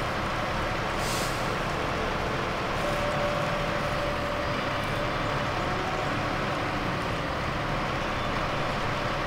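A heavy truck engine rumbles steadily as the truck crawls along.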